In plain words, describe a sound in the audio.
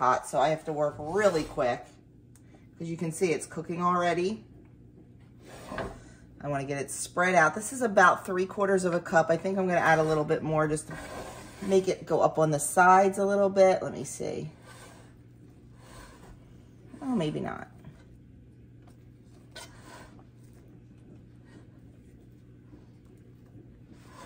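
A metal spatula scrapes against a cast iron pan.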